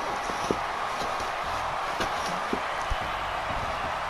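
A heavy body slams onto a wrestling mat.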